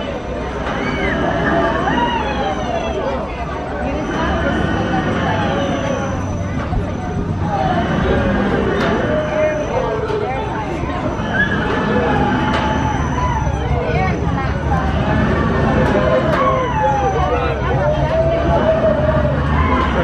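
Riders on a swinging amusement ride scream and shriek together.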